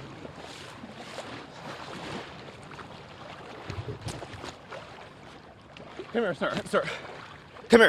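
A man wades through knee-deep floodwater, splashing.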